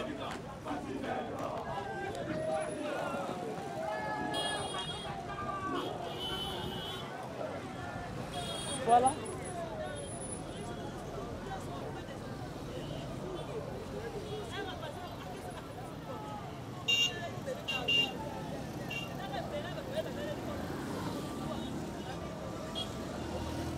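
A crowd of men and women talk and shout outdoors nearby.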